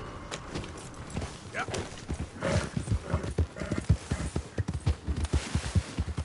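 Horse hooves gallop over grass.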